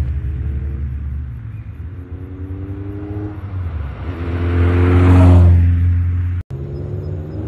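A sports car engine roars loudly as it speeds past.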